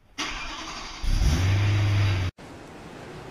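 A car engine rumbles loudly.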